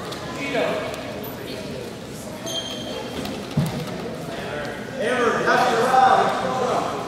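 Adults talk among themselves in a large echoing hall.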